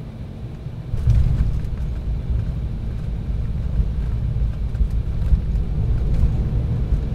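Landing wheels thud onto the runway and rumble along it.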